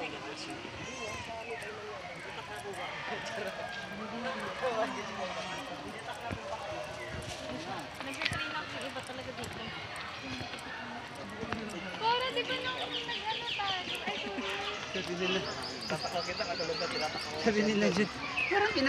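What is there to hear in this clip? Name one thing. Young adults talk and laugh casually nearby, outdoors.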